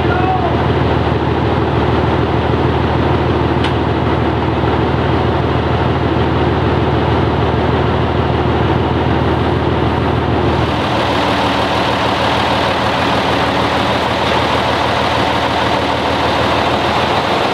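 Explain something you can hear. A diesel engine idles with a steady, loud rumble.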